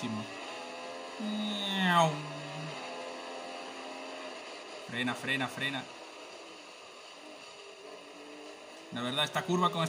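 A racing car engine whines loudly, rising and dropping in pitch as it shifts gears.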